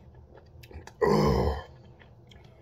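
A man exhales loudly after drinking.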